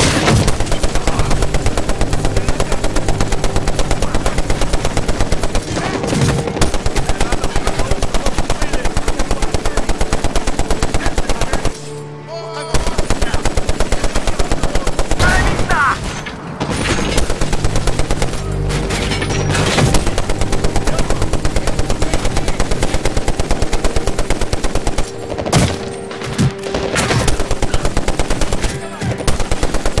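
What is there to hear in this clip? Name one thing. A heavy machine gun fires long, rapid bursts close by.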